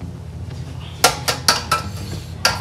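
A container rattles as it is shaken over a bowl.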